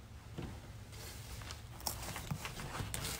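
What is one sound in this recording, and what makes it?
Heavy fabric rustles close by.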